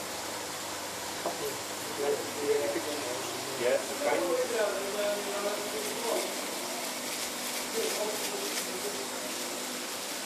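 An aquarium filter bubbles and hums steadily.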